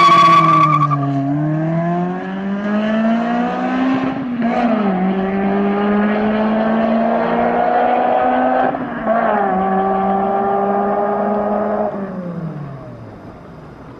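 A sports car engine roars as it accelerates away, shifting gears.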